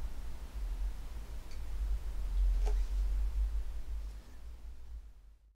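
Hands bump and rub against an instrument's wooden neck.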